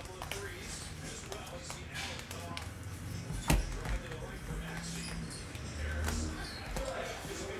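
Plastic card cases click and clack against each other.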